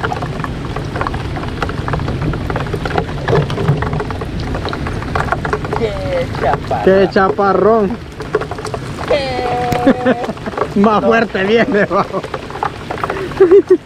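Heavy rain pours steadily onto water all around.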